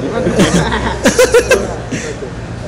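A young man laughs in bursts close by.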